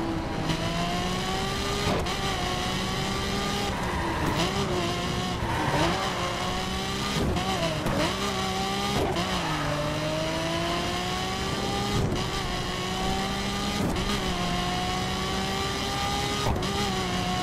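A sports car engine roars at high revs, rising in pitch through each gear and dropping with every gear change.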